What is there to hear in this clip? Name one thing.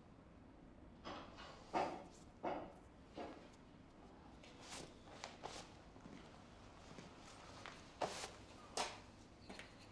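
Metal parts clink and knock as they are handled.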